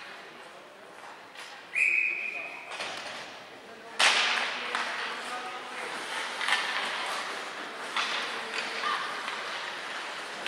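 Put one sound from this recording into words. Ice skates scrape across an ice rink in a large echoing hall.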